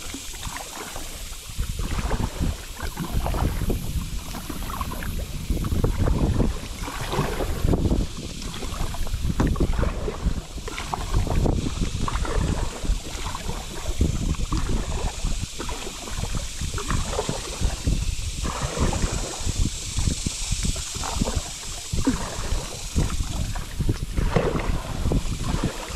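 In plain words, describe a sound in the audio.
A paddle splashes rhythmically in the water.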